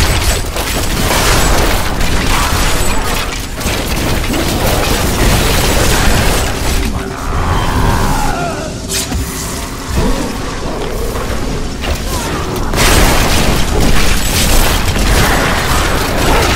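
Game spells crackle and blast in rapid bursts.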